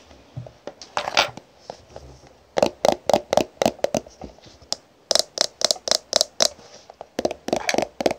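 Fingernails tap and scratch quickly on a plastic tube, close up.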